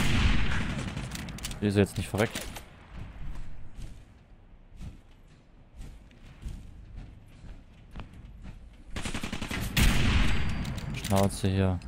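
A rifle fires a loud shot that echoes outdoors.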